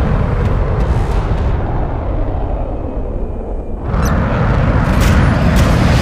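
Cannons fire in rapid bursts.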